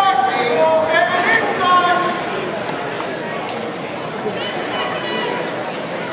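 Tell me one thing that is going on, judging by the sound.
A crowd murmurs steadily in the background.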